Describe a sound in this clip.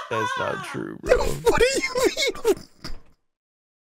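A young man laughs hard into a close microphone, in short bursts.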